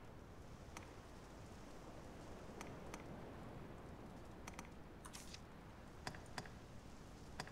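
Short soft clicks sound as menu items are selected.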